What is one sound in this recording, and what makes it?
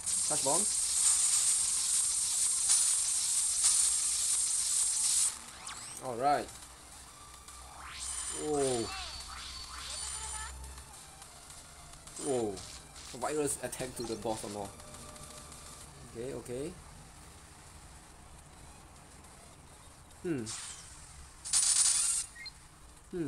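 Game sound effects chime and burst as attacks hit.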